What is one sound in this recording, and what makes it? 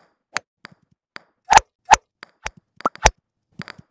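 A golf club taps a ball with a sharp knock.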